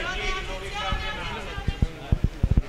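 A crowd of men and women shout excitedly close by.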